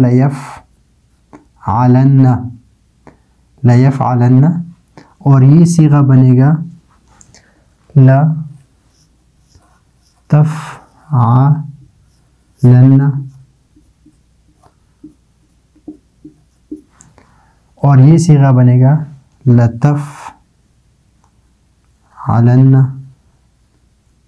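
A man speaks calmly and slowly in short phrases, close to a microphone.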